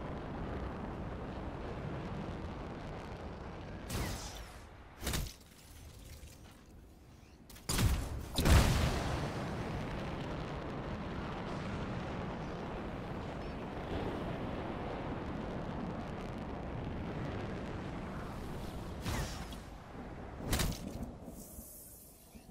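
Jet thrusters roar in flight.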